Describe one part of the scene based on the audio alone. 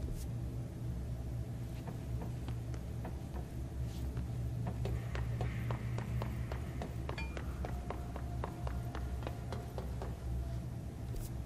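Quick footsteps run across a hard floor.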